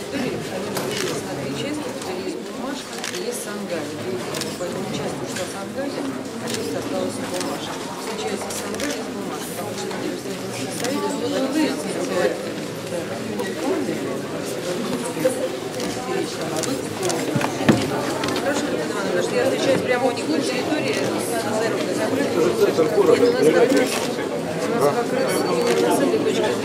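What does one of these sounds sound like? A crowd murmurs and chatters all around in a busy room.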